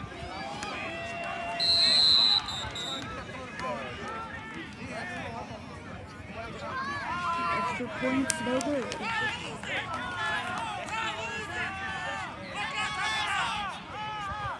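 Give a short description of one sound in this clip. A crowd of young men and boys chatter and shout close by outdoors.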